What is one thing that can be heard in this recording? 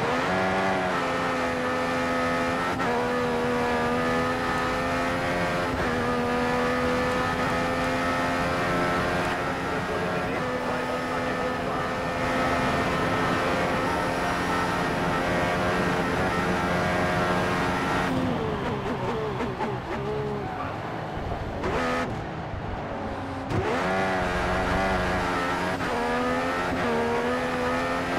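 A racing car engine screams at high revs, rising through the gears.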